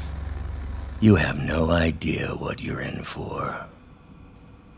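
A man speaks up close in a low, tense voice.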